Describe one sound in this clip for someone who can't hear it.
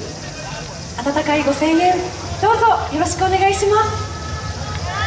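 A group of women sing together through loudspeakers.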